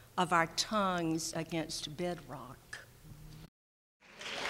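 An elderly woman speaks warmly into a microphone.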